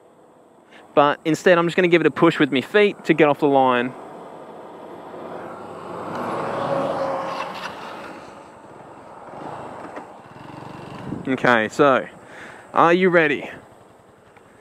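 A small motor scooter engine revs in short, sharp bursts.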